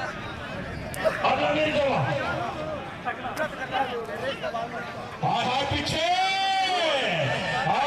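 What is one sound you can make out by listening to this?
A man commentates loudly and with animation through a loudspeaker.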